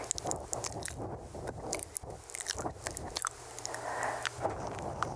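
A young woman whispers very close to a microphone.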